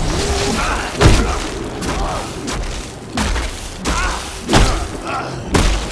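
Heavy blows land with loud thuds, again and again.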